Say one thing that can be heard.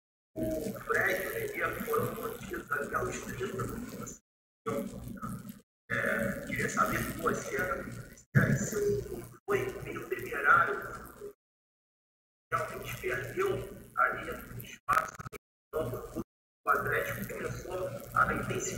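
A man speaks calmly into a microphone, with short pauses.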